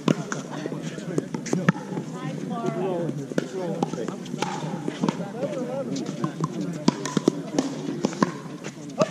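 Paddles strike a plastic ball with sharp pops.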